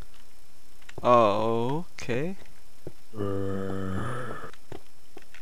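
A zombie groans low and hoarsely.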